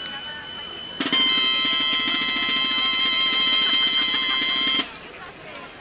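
Flutes play a lively tune.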